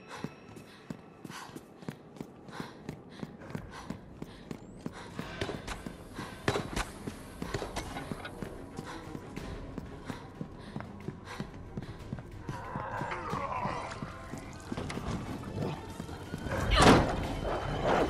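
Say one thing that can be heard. Footsteps run across a stone floor.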